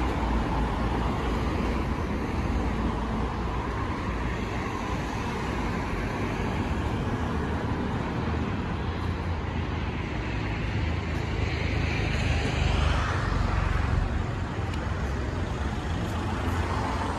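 City traffic rumbles steadily outdoors.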